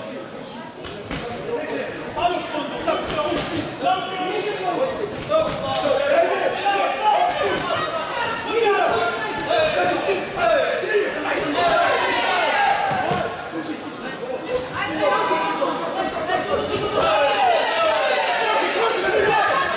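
Gloved punches and kicks thud against bodies.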